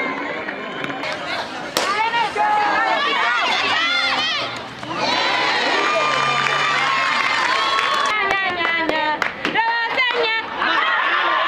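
Young women shout and cheer loudly outdoors.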